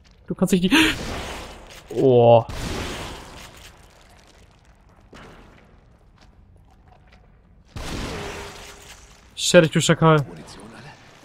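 A young man speaks with animation through a close microphone.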